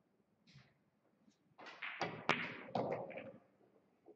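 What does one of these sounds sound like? A cue strikes a ball with a sharp click.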